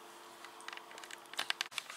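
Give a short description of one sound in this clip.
A young girl chews food close by.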